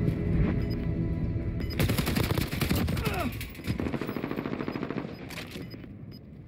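Game gunfire cracks in short bursts.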